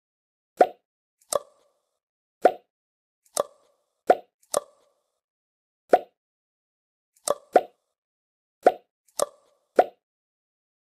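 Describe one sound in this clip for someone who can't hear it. Short wooden clicks and pops sound in quick pairs as screws are pulled out and planks drop.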